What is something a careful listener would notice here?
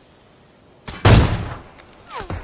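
A sniper rifle fires a single shot.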